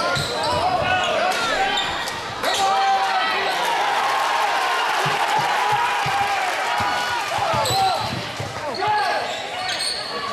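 A large crowd cheers and shouts in an echoing gym.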